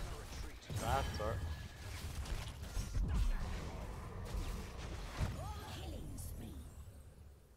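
Game combat effects clash and explode in quick bursts.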